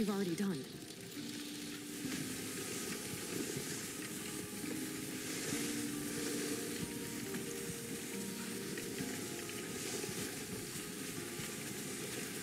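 Sled runners hiss over snow.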